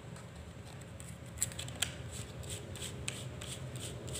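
A microphone grille scrapes as it is screwed on.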